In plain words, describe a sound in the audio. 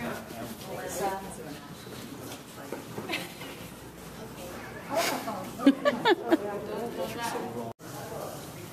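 Several young women talk and laugh with excitement nearby.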